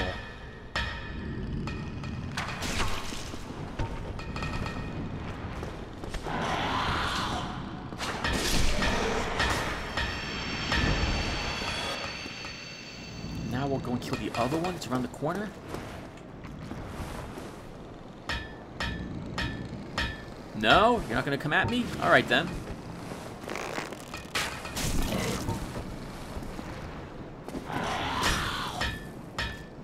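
Swords slash and clash in a fight.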